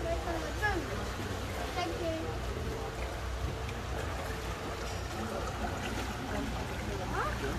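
Water laps and splashes gently along a channel.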